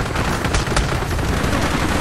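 A helicopter's rotor thumps nearby.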